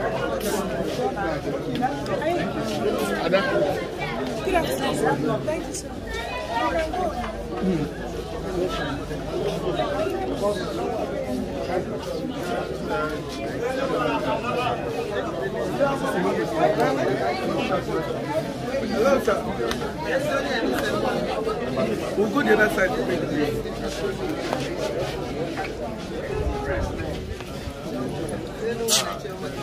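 A crowd of men and women chatters close by.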